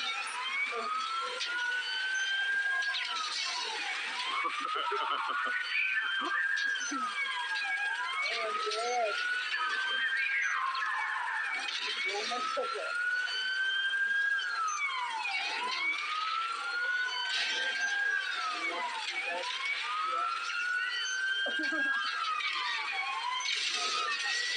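A police siren wails up and down, close by.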